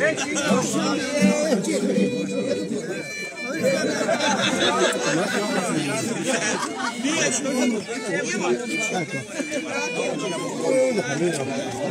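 An accordion plays a lively folk tune close by.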